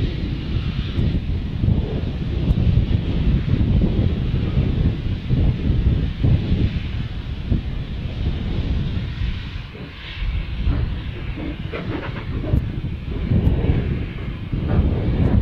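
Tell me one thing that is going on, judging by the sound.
A steam locomotive chuffs hard in the distance as it pulls away.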